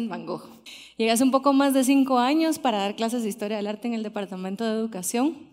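A woman speaks with animation through a microphone.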